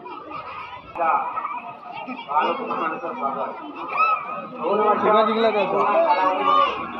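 A crowd murmurs along an outdoor street.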